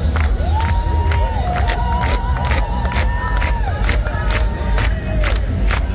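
A crowd of people cheers and chatters outdoors.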